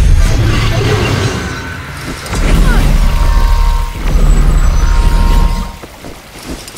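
A magic blast roars and crackles with a deep rumble.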